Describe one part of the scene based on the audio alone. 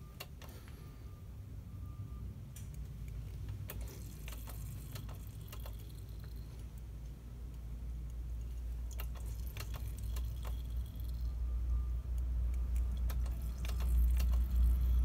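A metal tool clicks and taps against a fitting.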